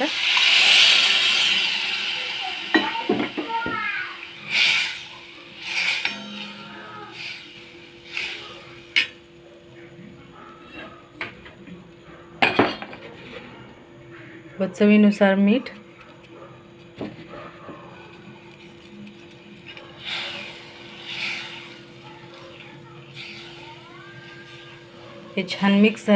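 A sauce bubbles and sizzles in a pan.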